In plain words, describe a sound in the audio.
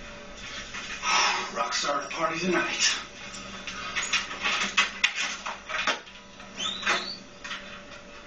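A man talks loudly nearby.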